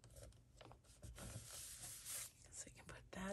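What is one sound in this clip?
Paper rustles and crinkles under hands.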